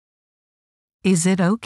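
A young woman speaks clearly and calmly.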